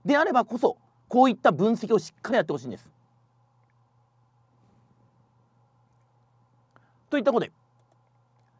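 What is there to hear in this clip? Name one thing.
A middle-aged man speaks calmly and clearly into a microphone, in short bursts with pauses.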